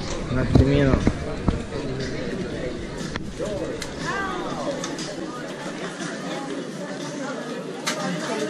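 Footsteps and sandals shuffle on pavement.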